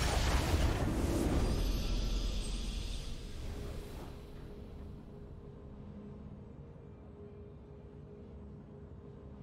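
A triumphant victory fanfare swells and fades.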